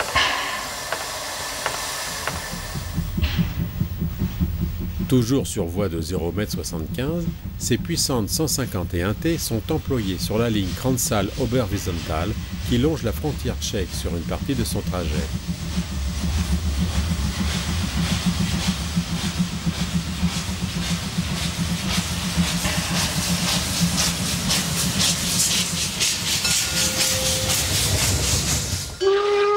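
A steam locomotive hisses loudly as it vents steam.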